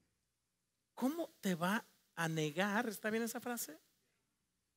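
A man speaks with animation to an audience.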